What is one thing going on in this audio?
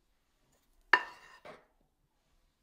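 A metal scoop clinks against a bowl.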